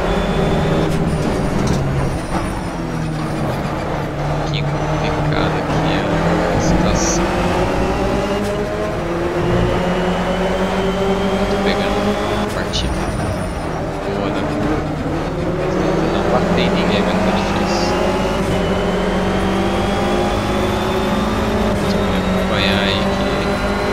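A four-cylinder race car engine revs at full throttle and shifts up through the gears.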